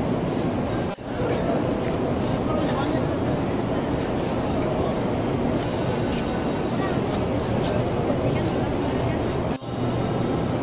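A crowd of men and women chatter and murmur in a large echoing hall.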